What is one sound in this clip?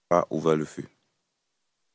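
A man speaks briefly into a microphone.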